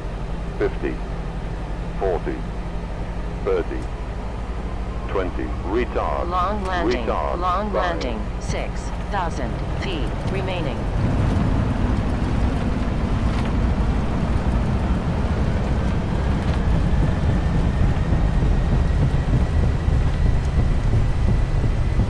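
Jet engines rumble low and steadily, then roar louder as the aircraft speeds up.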